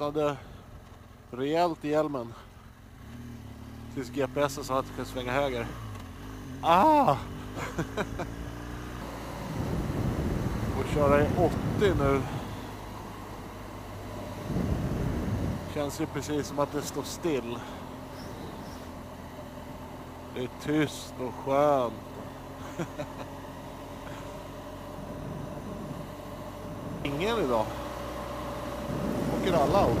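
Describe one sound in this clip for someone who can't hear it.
A motorcycle engine hums steadily and rises and falls as the rider changes speed.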